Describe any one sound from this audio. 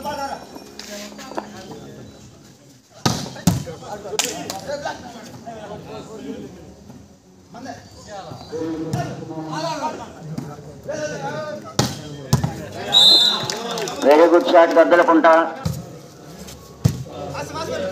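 Men shout and call out across an outdoor court.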